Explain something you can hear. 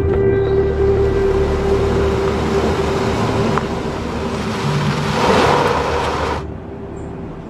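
A car engine hums as a vehicle drives up over rough ground.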